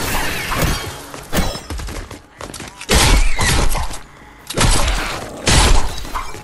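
A pickaxe strikes wood with repeated heavy thuds.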